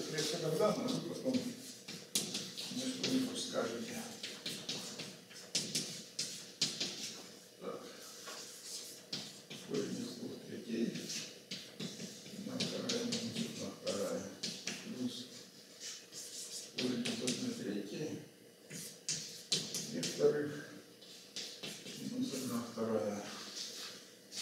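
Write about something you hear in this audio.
An elderly man speaks calmly, lecturing.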